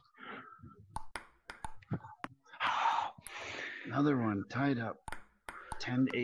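A table tennis ball clicks sharply against paddles and the table.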